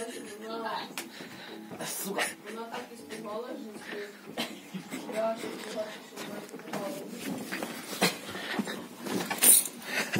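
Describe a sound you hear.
Hands rustle and knock about inside a sofa.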